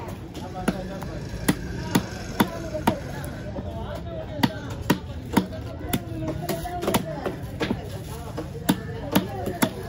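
A heavy knife chops through fish with sharp, regular thuds.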